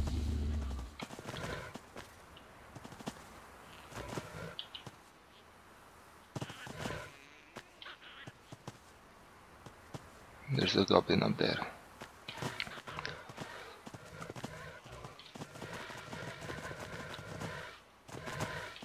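Footsteps rustle through grass at a quick pace.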